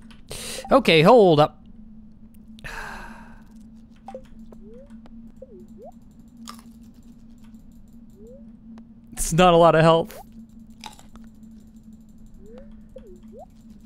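A short game chime plays as a menu opens and closes.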